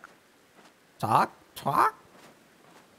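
A cartoon bird squawks loudly.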